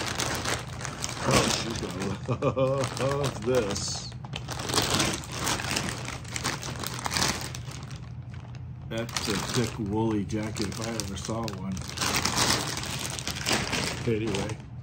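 A plastic bag crinkles and rustles loudly.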